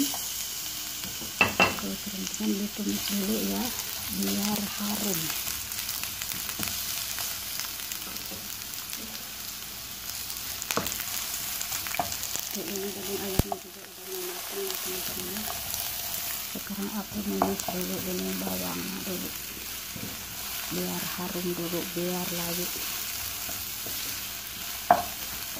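Onions sizzle in hot oil.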